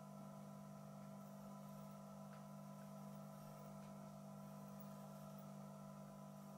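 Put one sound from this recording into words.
A transformer hums steadily with a low electrical buzz.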